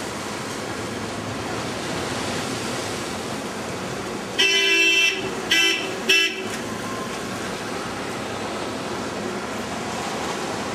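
Steady outdoor street noise murmurs from below.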